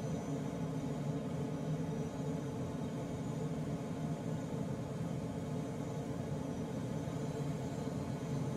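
Air rushes steadily past a glider's canopy.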